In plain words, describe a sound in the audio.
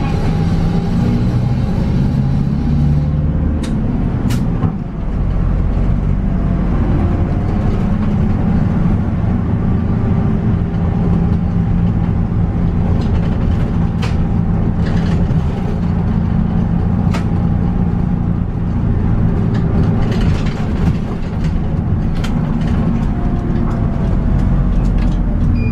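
Tyres roll on asphalt under a moving bus.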